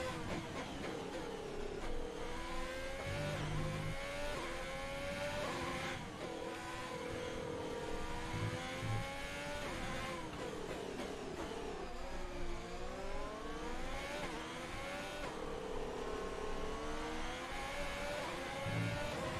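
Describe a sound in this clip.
A racing car engine whines loudly, rising in pitch and dropping sharply again and again as it shifts gears.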